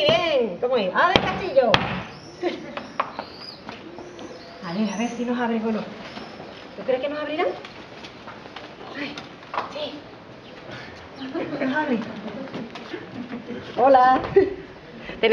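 Young girls talk and call out in high voices.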